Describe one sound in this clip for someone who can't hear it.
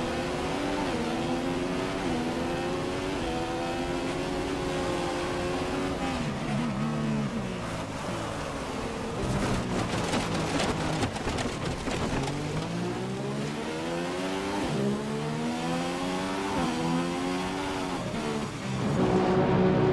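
A racing car engine roars, climbing and dropping in pitch as it shifts gears.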